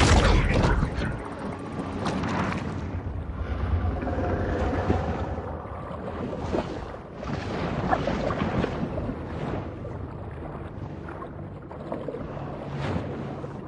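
Water swirls and rumbles in a muffled, steady underwater hush.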